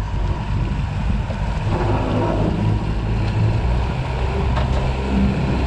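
Water churns and splashes behind a boat.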